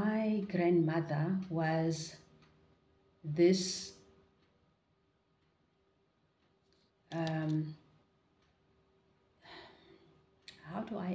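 A woman speaks calmly and close, in short phrases with pauses.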